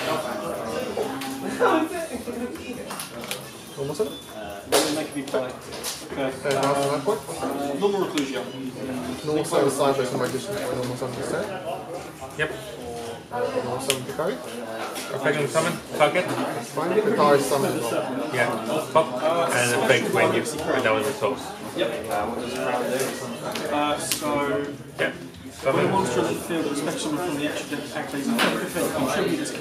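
Playing cards shuffle and rustle in hands.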